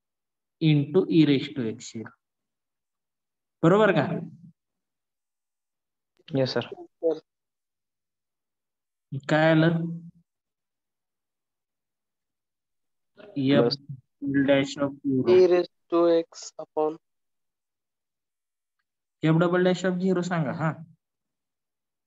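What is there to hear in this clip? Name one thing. A man explains calmly through a microphone, in short phrases with pauses.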